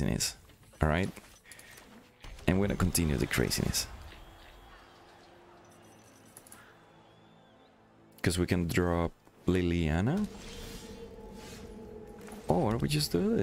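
Digital game sound effects whoosh and chime as cards are played.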